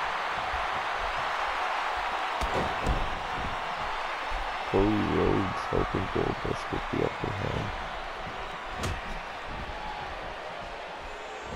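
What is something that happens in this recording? A large crowd cheers and murmurs in a big arena.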